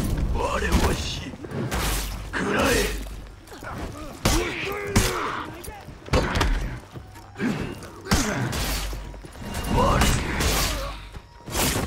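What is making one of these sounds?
Metal weapons clash and strike with sharp, heavy blows.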